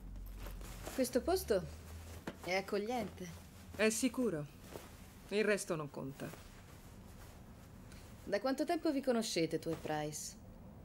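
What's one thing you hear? A woman speaks nearby in a tense, clipped voice.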